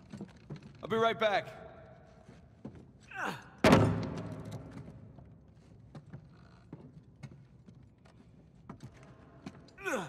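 Footsteps thud on creaking wooden planks.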